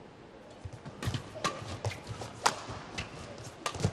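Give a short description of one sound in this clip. A shuttlecock is struck back and forth with rackets.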